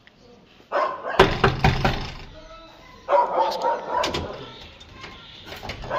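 A key rattles in a door lock.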